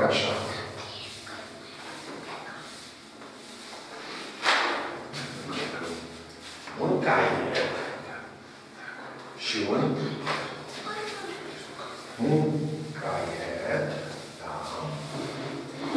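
An elderly man speaks calmly and clearly, close by in an echoing room.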